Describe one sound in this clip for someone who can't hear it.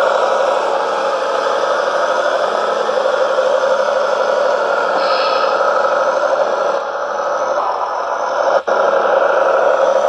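A small electric motor whines steadily as a toy tractor drives.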